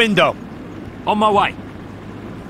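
A second man answers briefly.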